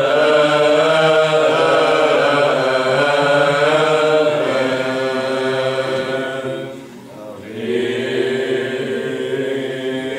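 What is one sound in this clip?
A group of young men chant together in a resonant hall.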